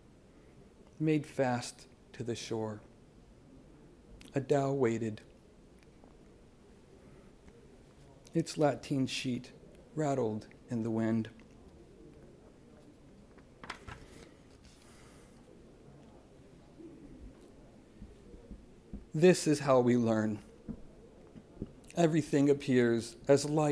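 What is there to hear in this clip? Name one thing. A middle-aged man reads aloud calmly into a microphone, with pauses between phrases.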